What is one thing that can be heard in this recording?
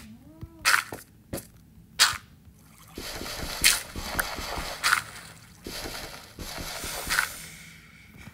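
Dirt blocks crunch as they are dug and broken.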